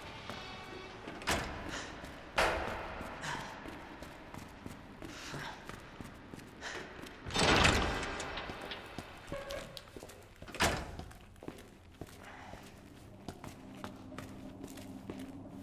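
Footsteps thud on a hard floor in a large echoing space.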